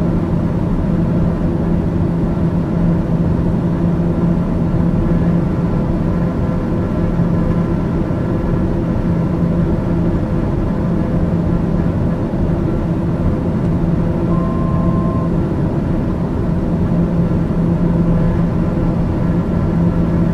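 Aircraft engines drone steadily in flight.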